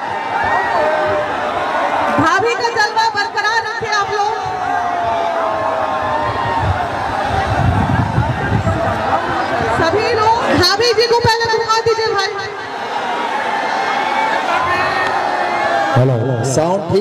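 A woman sings loudly into a microphone through a loudspeaker.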